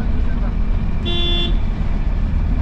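A vehicle horn honks briefly.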